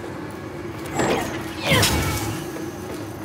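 A magic blast bursts with a loud crackling whoosh.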